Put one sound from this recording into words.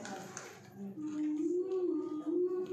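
A young woman sings a sustained melody nearby.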